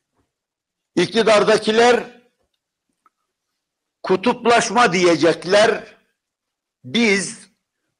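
An elderly man speaks forcefully into a microphone in bursts, with pauses between phrases.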